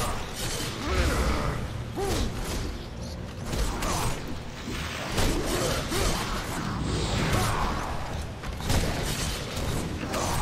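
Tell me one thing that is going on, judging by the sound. Fiery blasts burst with a loud whoosh.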